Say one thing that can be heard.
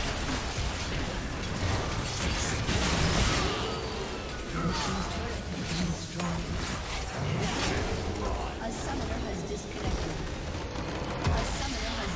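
Spell blasts and weapon clashes crackle and boom in a busy fight.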